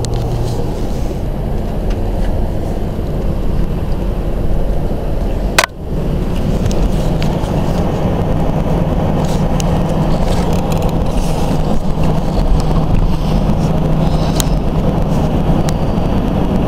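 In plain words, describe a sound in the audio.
A car's engine and tyres rumble steadily on the road.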